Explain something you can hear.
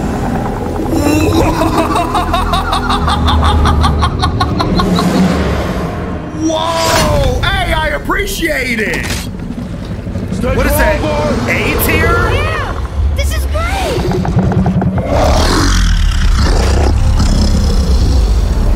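A giant creature's deep voice booms and rumbles.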